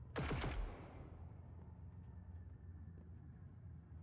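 A gun is reloaded with a metallic click.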